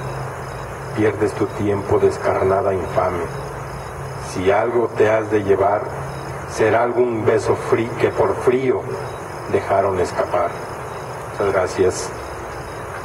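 A man reads aloud calmly into a microphone, heard through a loudspeaker.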